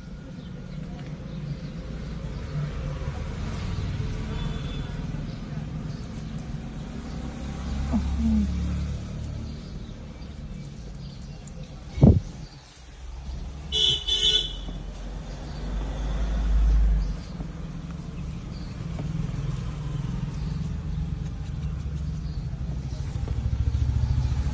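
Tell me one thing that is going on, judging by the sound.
A puppy gnaws and licks softly at a hand.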